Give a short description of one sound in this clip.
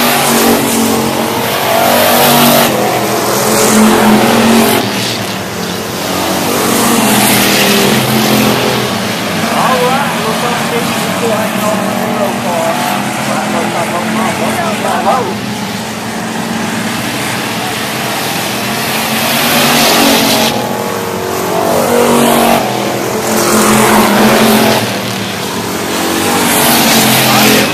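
Race car engines roar loudly, swelling and fading as cars speed past.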